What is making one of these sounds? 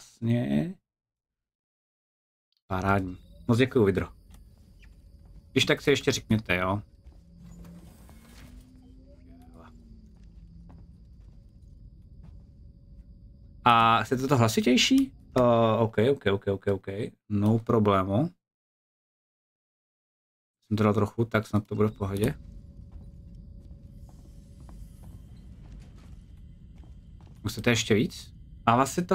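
A man talks into a microphone in bursts, close up and with animation.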